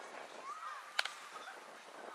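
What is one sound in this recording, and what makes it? A ball smacks sharply into a catcher's mitt.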